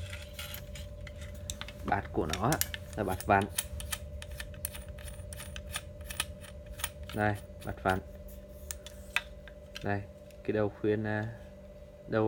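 Fishing rod sections click and tap softly as hands handle them.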